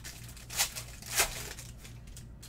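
A foil wrapper crinkles as it is torn open.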